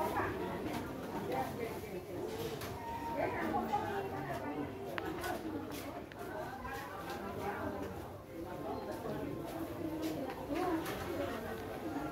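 A kitten mews repeatedly.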